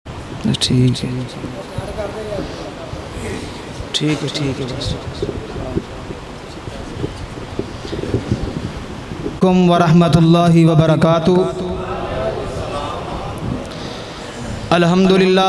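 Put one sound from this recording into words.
A young man chants loudly through a microphone and loudspeakers, with echo.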